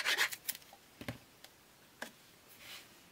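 A card taps softly onto a table.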